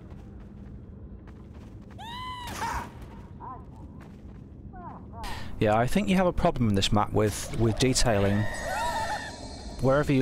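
Magical sparkles chime and shimmer.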